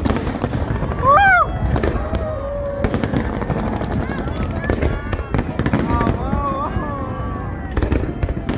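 A crowd cries out in delight.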